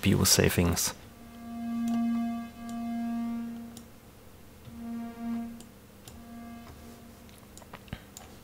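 A synthesizer plays soft, sustained notes that swell and fade.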